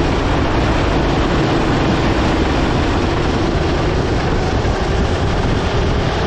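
A go-kart engine buzzes loudly up close at high revs.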